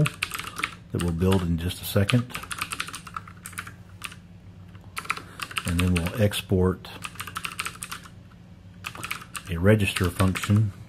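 Keys clack rapidly on a keyboard.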